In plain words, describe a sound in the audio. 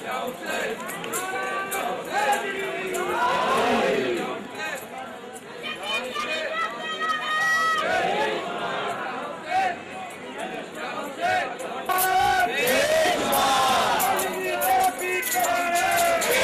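A crowd of men chants loudly and with emotion outdoors.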